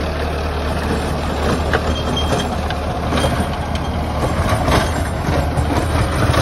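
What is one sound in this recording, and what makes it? A rotary tiller churns through dry soil with a rough, rattling roar.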